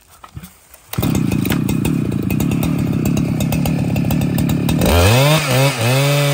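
A chainsaw roars loudly while cutting into a tree trunk.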